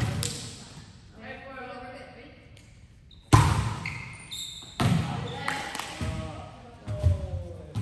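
A volleyball is hit with sharp thuds that echo through a large hall.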